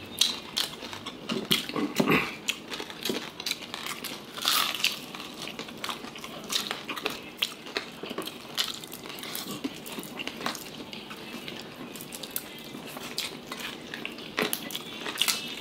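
Crispy food crackles and rustles as fingers tear it apart.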